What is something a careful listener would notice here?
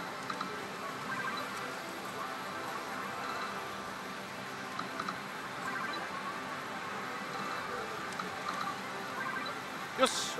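Buttons on a slot machine click.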